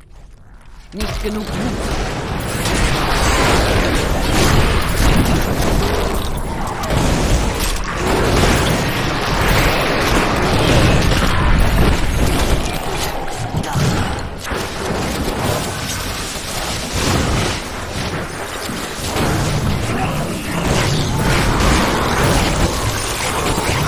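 Game spells explode and crackle in a loud, busy fight.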